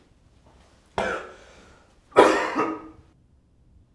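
A young man sneezes loudly.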